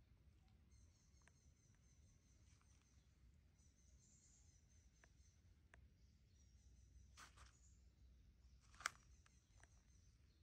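Dry leaves crackle softly under a small monkey's feet.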